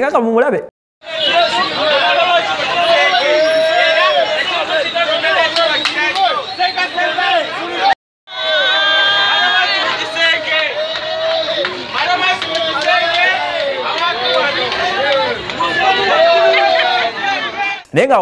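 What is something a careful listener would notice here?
A crowd of men and women cheers and shouts loudly.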